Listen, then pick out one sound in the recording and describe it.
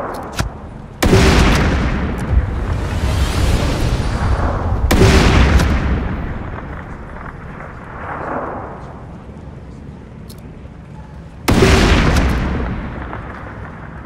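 A sniper rifle fires loud shots that boom and echo.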